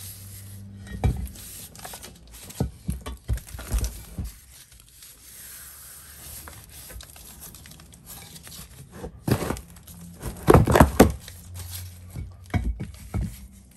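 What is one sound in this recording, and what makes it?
Chalky rocks knock and scrape against each other.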